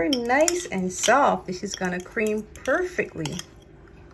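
A spoon scrapes butter against a glass bowl.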